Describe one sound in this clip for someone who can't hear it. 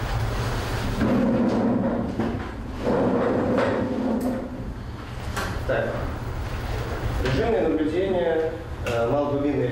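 A young man speaks calmly in an echoing room.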